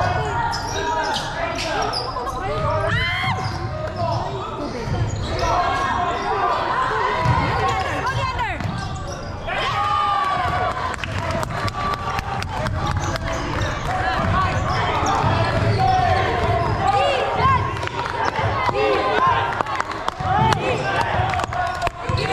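Young players shout and call out to each other across an echoing hall.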